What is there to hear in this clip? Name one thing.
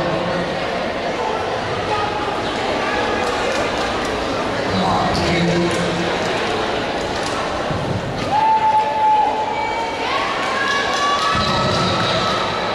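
Music plays over loudspeakers in a large echoing hall.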